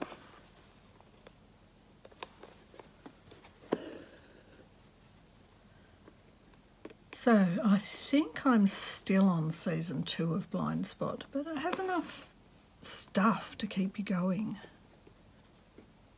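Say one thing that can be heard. A thread is pulled through cloth with a soft scratching sound.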